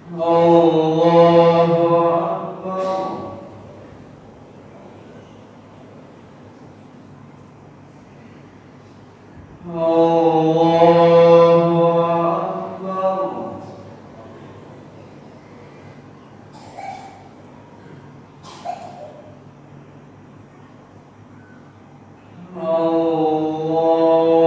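A man chants a prayer call in a loud, drawn-out voice through a microphone, echoing in a large hall.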